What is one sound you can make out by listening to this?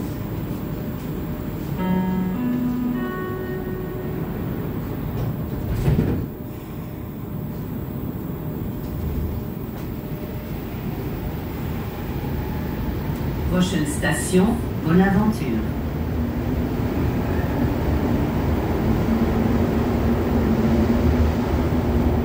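A subway car rumbles and hums steadily.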